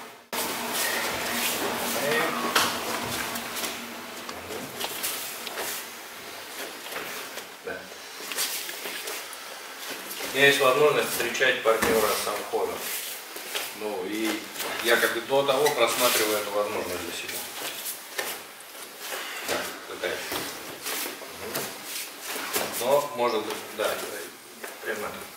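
Bare feet step and shuffle on mats.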